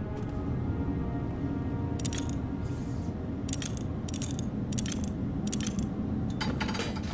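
Dials on a machine click sharply as they are turned.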